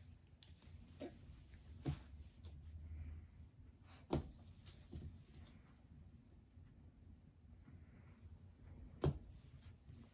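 Small hands slap on a wooden floor.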